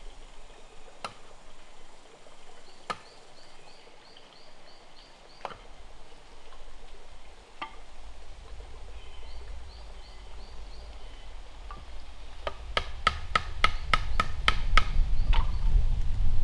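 Sharp knocking blows ring out, slow at first and then fast in a quick run.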